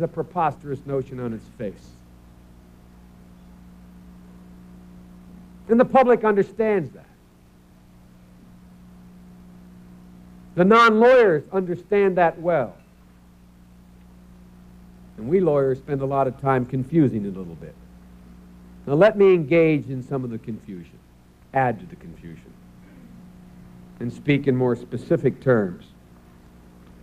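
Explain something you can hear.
A middle-aged man speaks into a microphone in bursts, with pauses between phrases.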